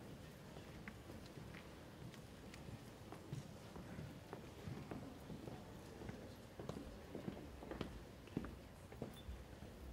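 Footsteps shuffle and tap on a hard floor in a large echoing hall.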